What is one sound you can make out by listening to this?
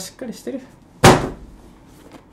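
A cardboard box thumps as it is set down.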